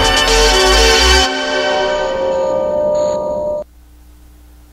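Music plays loudly through loudspeakers in a large hall and stops abruptly.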